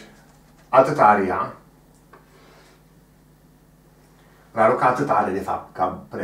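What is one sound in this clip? An elderly man speaks calmly nearby, as if explaining.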